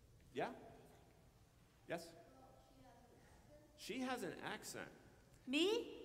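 A woman speaks with animation in a large echoing hall.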